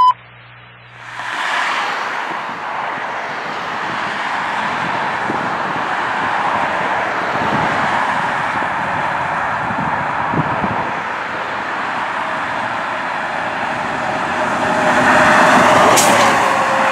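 An ambulance engine roars and its tyres hiss on the road as it drives closer and passes.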